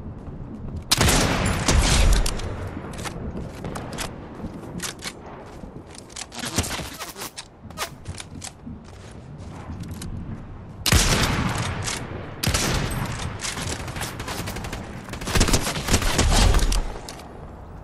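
Sniper rifle shots crack loudly with a booming echo.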